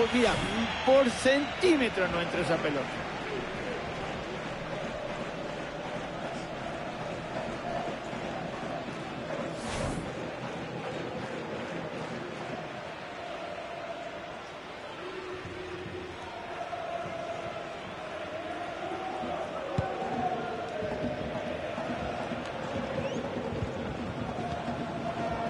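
A big crowd murmurs steadily throughout.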